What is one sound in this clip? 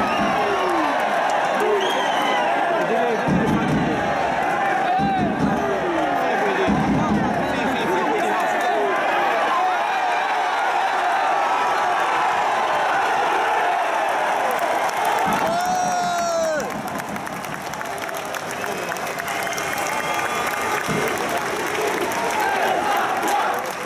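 A large crowd of spectators cheers and chants outdoors.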